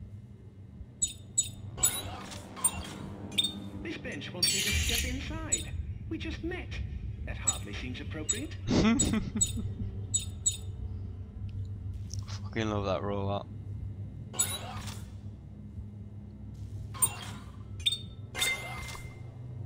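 Short electronic menu blips sound as selections change.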